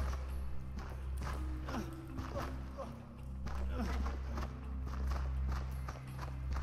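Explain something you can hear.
Footsteps patter quickly on a dirt path.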